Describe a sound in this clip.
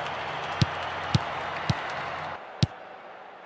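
A crowd cheers loudly in a stadium.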